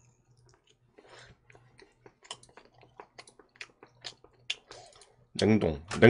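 A man chews food with soft smacking sounds.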